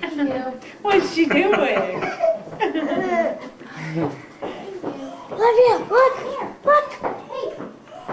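A woman talks nearby in a high, playful voice.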